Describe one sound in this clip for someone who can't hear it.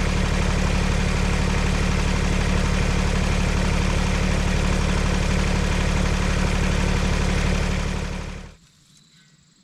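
A tractor engine idles loudly nearby, then cuts off.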